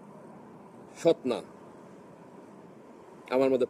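A man speaks close by in short bursts.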